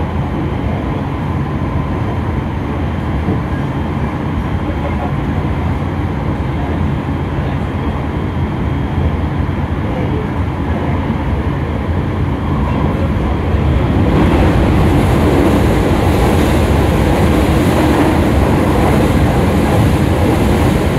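A train rumbles steadily along its track and grows louder partway through.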